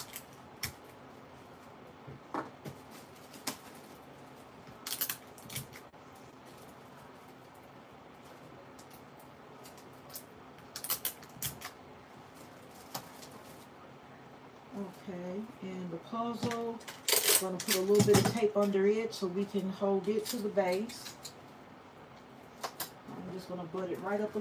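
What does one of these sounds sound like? Plastic-wrapped toy packages crinkle and knock as hands push them into a plastic tub basket.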